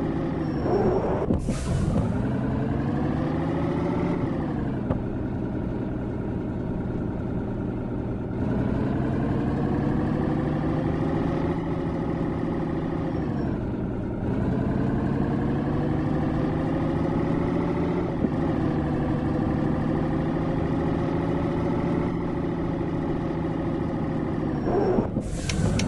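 A truck's diesel engine hums steadily, its pitch rising and falling as it speeds up and slows down.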